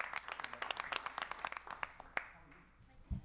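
An audience claps in a large room.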